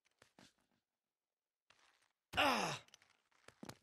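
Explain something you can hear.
Hands scrape and grip on rough stone during a climb.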